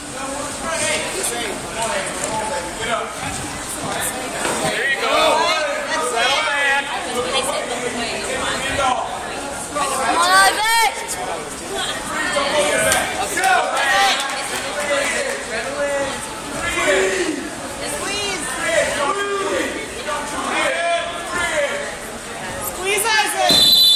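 A referee calls out to the wrestlers.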